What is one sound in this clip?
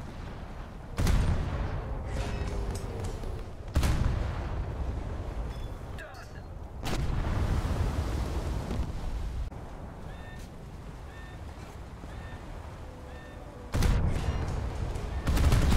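Shells explode with deep rumbling blasts.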